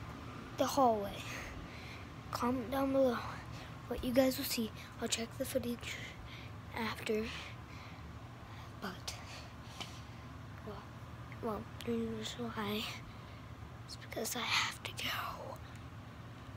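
A young boy talks close to the microphone.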